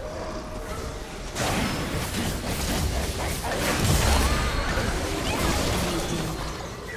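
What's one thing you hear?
Magic spells burst and crackle in a video game fight.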